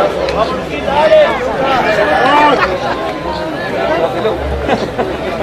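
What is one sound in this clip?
Young men shout and call out to each other outdoors across an open field.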